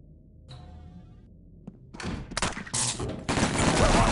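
A heavy metal door swings open.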